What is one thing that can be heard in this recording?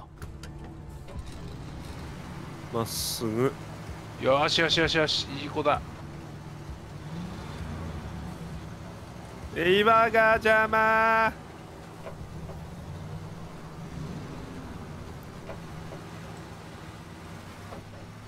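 A truck engine hums steadily.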